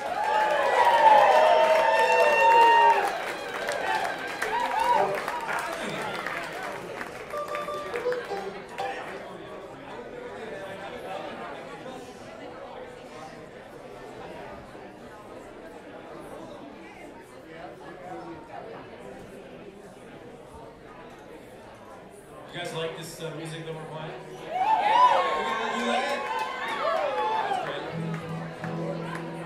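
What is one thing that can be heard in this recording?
A string band plays a lively tune on banjo, guitar, mandolin and upright bass.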